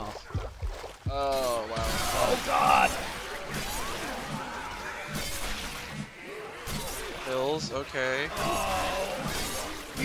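Zombies snarl and growl close by.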